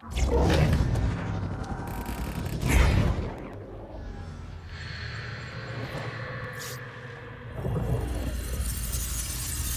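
Deep whooshing and rumbling game effects surge and fade.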